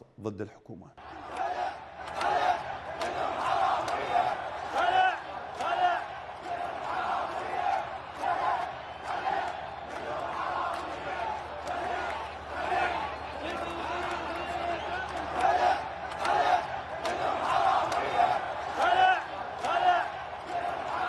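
A large stadium crowd chants and shouts loudly.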